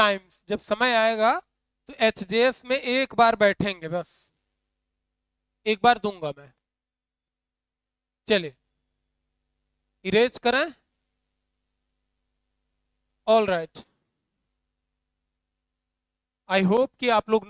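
A young man lectures into a close microphone in bursts with pauses.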